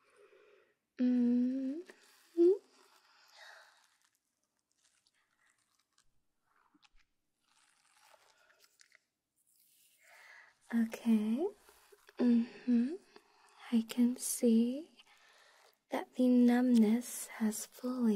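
A young woman speaks softly and teasingly, close to the microphone.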